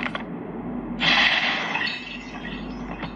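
A magical shimmering whoosh swells and fades.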